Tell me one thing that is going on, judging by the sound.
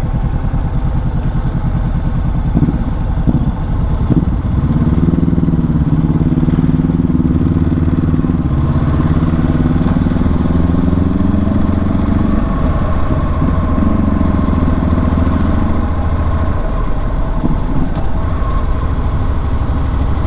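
A motorcycle engine hums steadily as the bike rides along a road.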